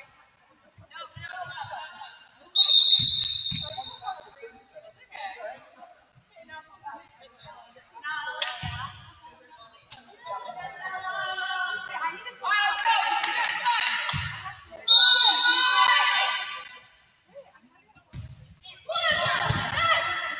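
A volleyball is struck with sharp thumps that echo around a large hall.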